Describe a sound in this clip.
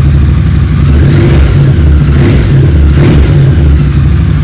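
A motorcycle engine revs up briefly a few times.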